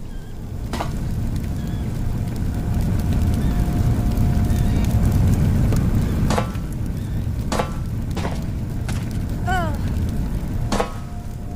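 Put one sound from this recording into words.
A gas flame roars loudly from a broken pipe.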